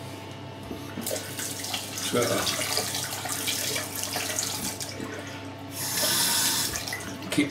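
A razor scrapes over stubble.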